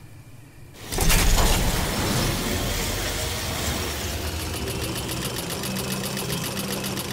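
A zipline whirs and rushes steadily.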